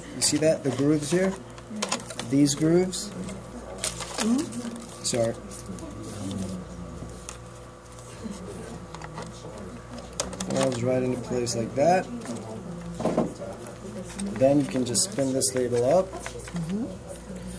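A paper roll rustles and slides.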